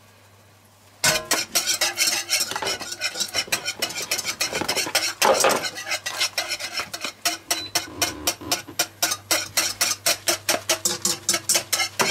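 A metal whisk clicks and scrapes rapidly against a pan.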